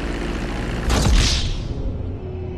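A plane crashes with a loud impact.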